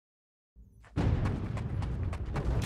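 Game music plays loudly.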